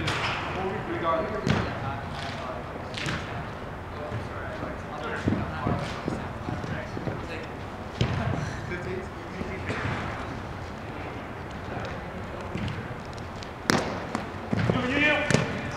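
Young men call out to each other in a large echoing hall.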